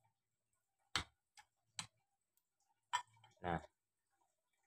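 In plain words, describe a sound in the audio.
Metal parts of a hand press click and clack.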